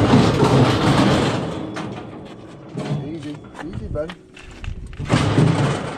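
A steel gate swings and latches shut with a clang.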